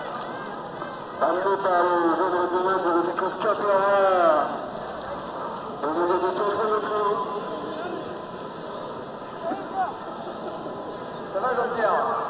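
A crowd murmurs across a large open stadium.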